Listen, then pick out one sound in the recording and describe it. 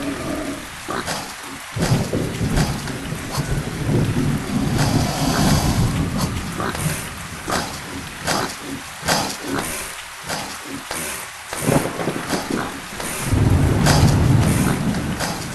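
A creature's blows land with sharp thuds.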